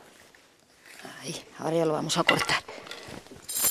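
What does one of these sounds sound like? A woman speaks calmly close by, through a clip-on microphone.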